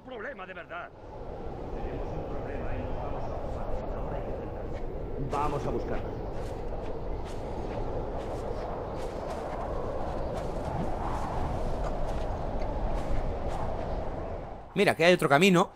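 Wind howls steadily through a snowstorm.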